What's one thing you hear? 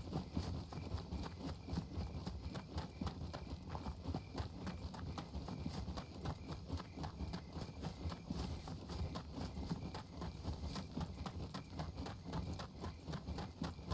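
Footsteps crunch steadily through grass and brush.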